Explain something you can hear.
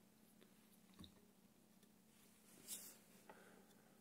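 A metal tumbler is set down on a wooden table.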